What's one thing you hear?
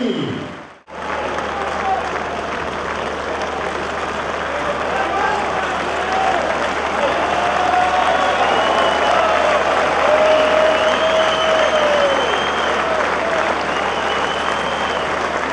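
A large crowd cheers and applauds steadily.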